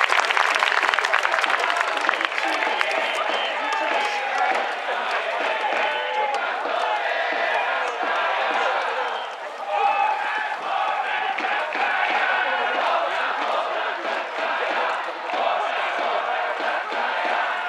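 A large crowd chants in an open stadium.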